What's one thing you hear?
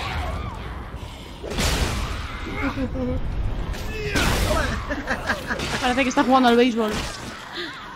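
Heavy blows thud and squelch against bodies.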